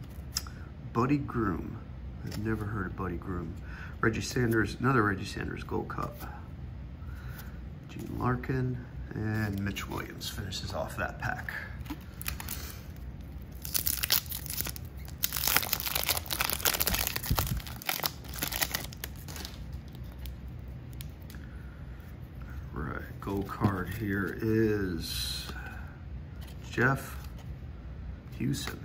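Cardboard trading cards slide and flick against each other.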